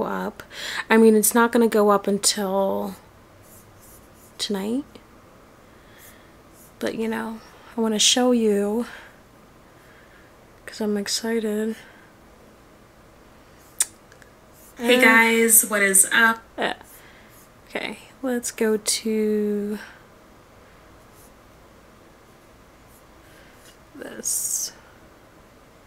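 A young woman talks calmly and close up, in short bursts with pauses.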